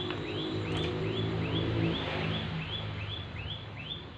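An electric bicycle's motor whirs softly as the bicycle rides away.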